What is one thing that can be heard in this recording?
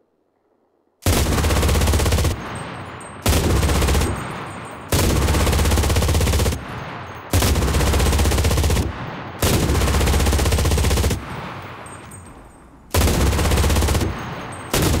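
A heavy machine gun fires long, rapid bursts with short pauses between them.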